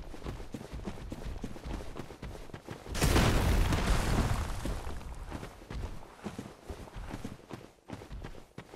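Armoured footsteps thud quickly on soft ground.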